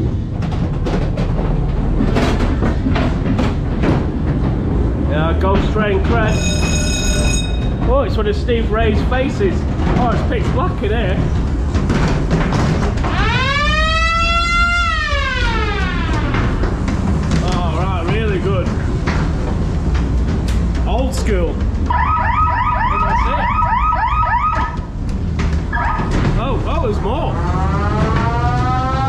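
A ride car rumbles and clatters along a track.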